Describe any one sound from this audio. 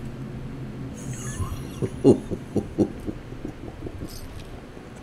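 A man talks casually into a close microphone.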